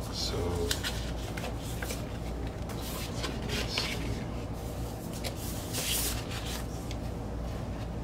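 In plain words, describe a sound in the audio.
A paper record sleeve slides and scrapes against plastic.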